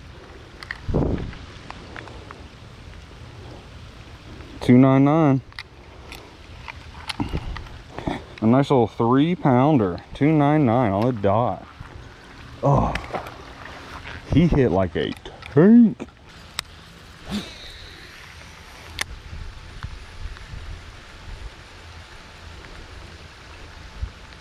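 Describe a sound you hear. Light rain patters steadily on water outdoors.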